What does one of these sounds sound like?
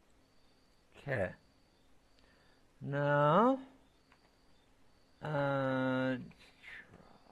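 A young man speaks briefly and calmly into a microphone close by.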